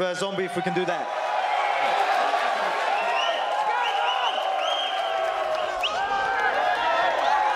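A large crowd cheers and whistles in a big hall.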